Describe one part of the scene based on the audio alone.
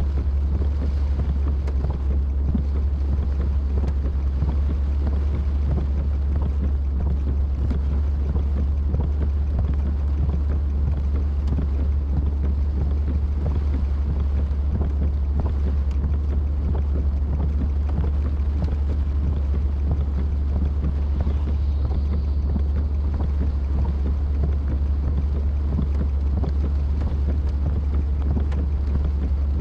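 A car engine hums steadily from inside.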